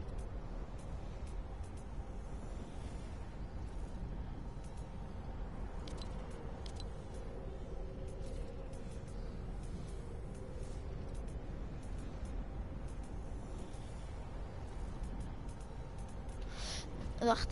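Soft menu clicks tick as a list scrolls.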